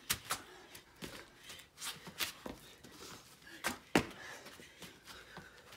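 A woman breathes hard with effort.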